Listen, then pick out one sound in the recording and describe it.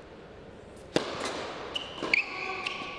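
A racket strikes a tennis ball sharply.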